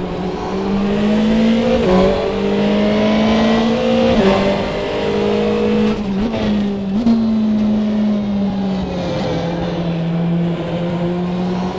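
A racing car engine roars steadily, its pitch rising with each gear and dropping sharply at each gear change.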